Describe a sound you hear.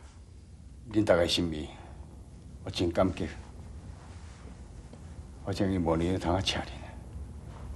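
An elderly man speaks calmly.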